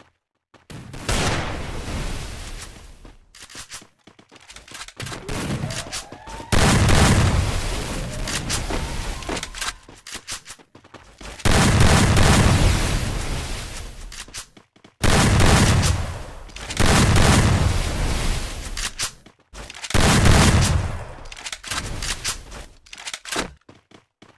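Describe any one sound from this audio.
Heavy thuds burst out as barriers slam down one after another.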